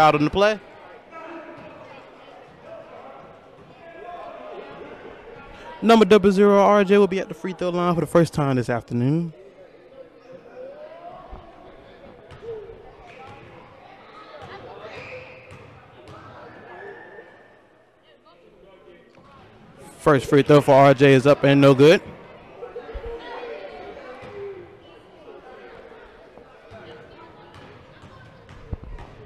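Children and adults talk and call out in a large echoing gym.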